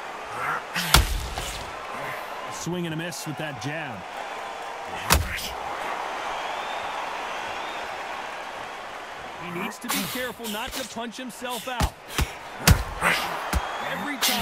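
Gloved punches land with heavy thuds.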